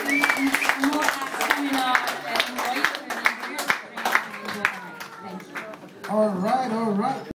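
A small live band plays in a room.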